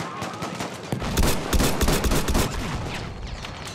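A rifle fires a single loud shot close by.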